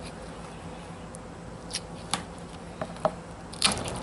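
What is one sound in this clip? Pliers tug and tear at a fish's tough skin.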